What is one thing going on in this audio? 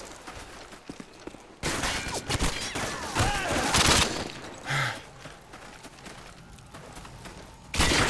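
Gunfire rattles close by in sharp bursts.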